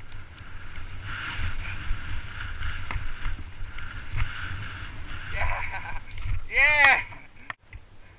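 Bike tyres rumble and crunch over a dirt trail.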